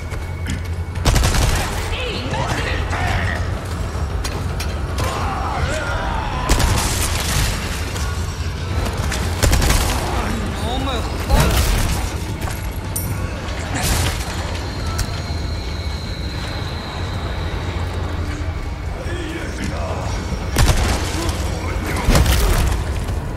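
A pistol fires loud shots.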